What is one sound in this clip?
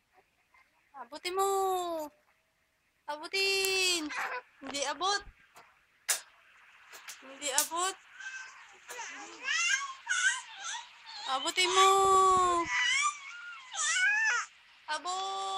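A baby squeals and babbles loudly and close by.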